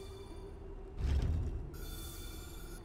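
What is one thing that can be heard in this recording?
A stone piece thuds into place with a low rumble.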